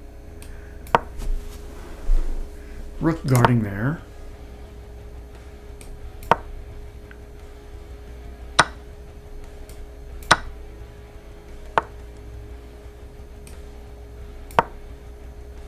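Short sharp clicks sound now and then as chess moves are played.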